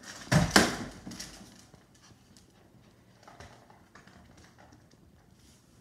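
Small dogs' claws patter and click on a wooden floor.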